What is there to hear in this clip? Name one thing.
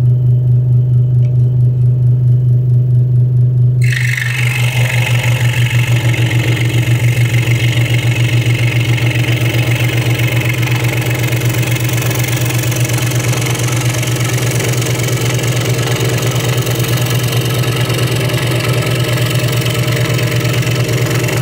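A scroll saw motor hums and buzzes steadily.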